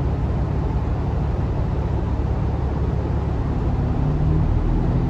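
A bus engine rumbles steadily at idle inside the cabin.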